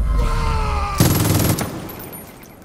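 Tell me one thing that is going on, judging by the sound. A rifle fires a loud shot that echoes outdoors.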